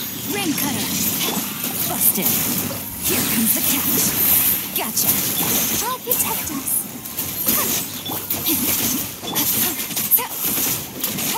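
Magical attacks crackle and burst in quick succession.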